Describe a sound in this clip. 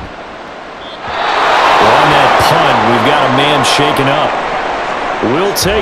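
A stadium crowd cheers and roars loudly.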